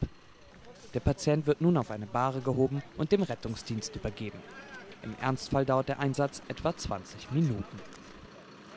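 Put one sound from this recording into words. Men talk with each other outdoors.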